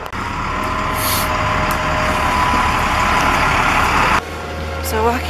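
A wheel loader's engine rumbles close by.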